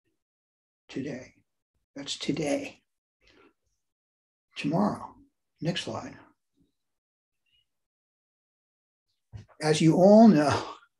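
An elderly man speaks calmly over an online call, in short phrases with pauses.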